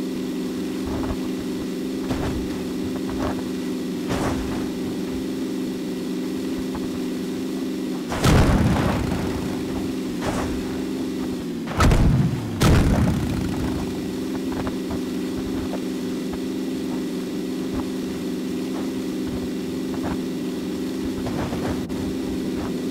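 A car's suspension thuds and bumps over uneven terrain.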